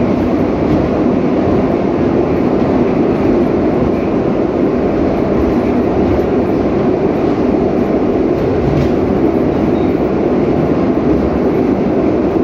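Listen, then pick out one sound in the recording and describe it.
A train rumbles steadily as it rolls along.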